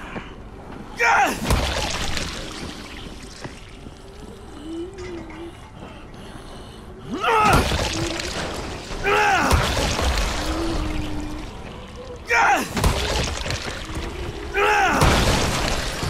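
Heavy blows thud into bodies with wet, squelching impacts.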